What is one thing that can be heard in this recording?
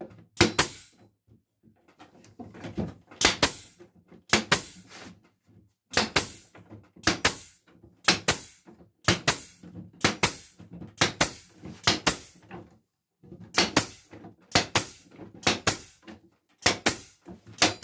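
A hand rattles loose wooden slats, which clack against each other in sharp bursts.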